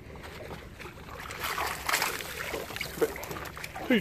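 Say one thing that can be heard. A fish splashes in the water as a net scoops it up.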